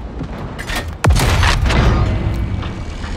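A tank cannon fires with a loud boom that echoes away.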